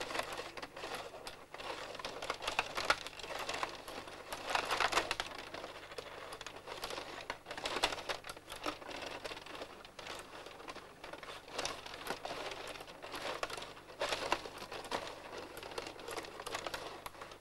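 A small puck clicks against the players and the rink walls.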